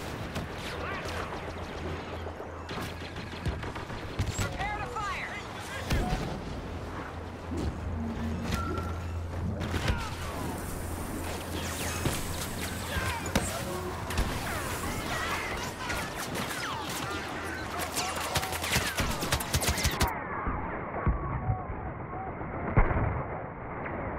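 Blaster fire crackles and zaps in quick bursts.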